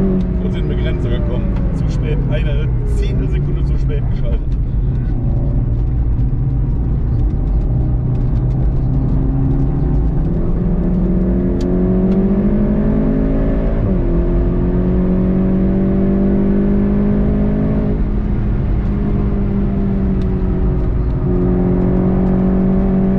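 A car engine roars loudly, revving up and down as the car brakes and speeds up.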